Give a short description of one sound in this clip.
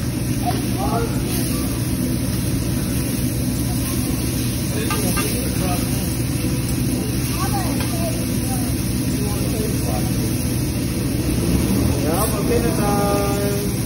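Food sizzles steadily on a hot griddle.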